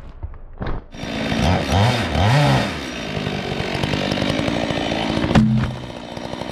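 A chainsaw revs and whines nearby.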